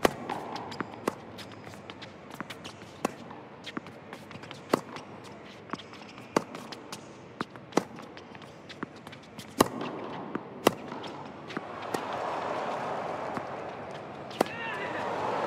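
Rackets strike a tennis ball back and forth in a rally.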